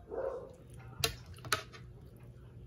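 A metal spoon clinks against a ceramic plate.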